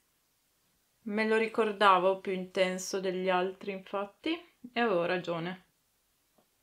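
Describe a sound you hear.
A woman talks calmly and close up.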